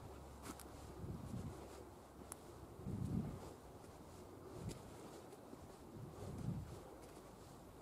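Footsteps thud on stone paving.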